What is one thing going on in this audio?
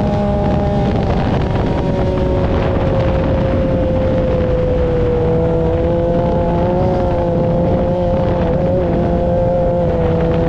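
An off-road buggy engine drones steadily at speed.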